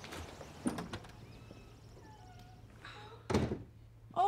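A wooden door swings and shuts with a thud.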